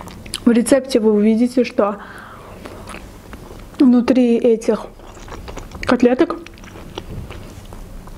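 A young woman chews food softly up close.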